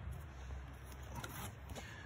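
Books slide and knock against cardboard.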